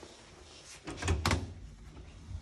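An electronic door lock clicks as a card is held to it.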